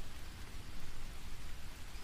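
Water trickles and splashes over rocks.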